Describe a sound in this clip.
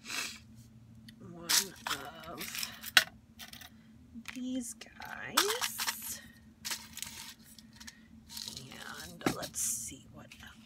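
Plastic containers clack and rattle together.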